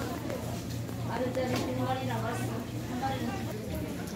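Several adults talk at a distance amid a busy crowd.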